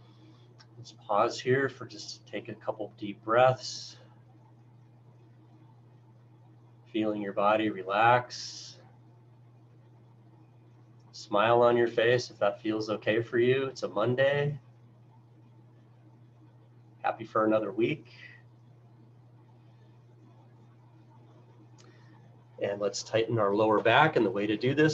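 A middle-aged man speaks calmly in bursts over an online call.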